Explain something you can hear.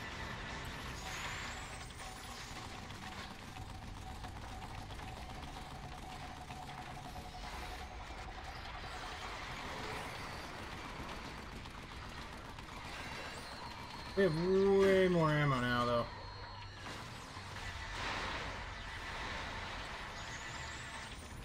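A laser cannon blasts with a roaring hiss.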